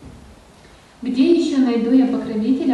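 An elderly man chants loudly in a steady, sung voice through a microphone.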